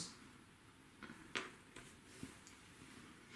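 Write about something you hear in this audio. Small game pieces tap lightly on a table.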